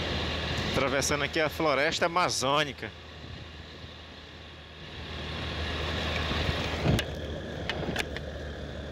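Tyres roll over a dirt road.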